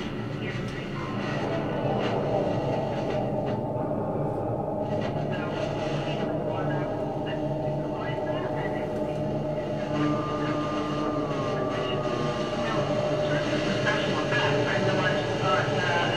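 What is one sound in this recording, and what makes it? A saxophone plays sustained, low, droning notes.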